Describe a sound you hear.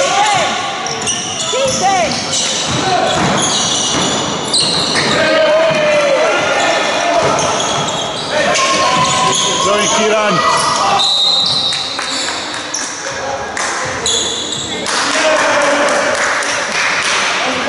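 Young men shout to each other across the echoing hall.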